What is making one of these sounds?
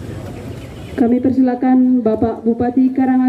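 A group of young women chant together in unison.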